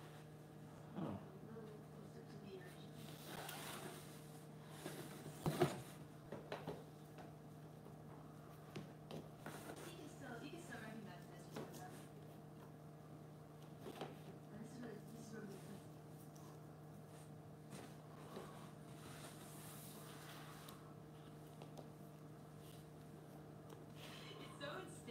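Stiff boards knock and scrape against a hard floor.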